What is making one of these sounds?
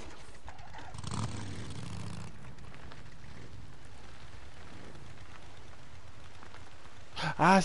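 A motorbike engine starts and rumbles steadily.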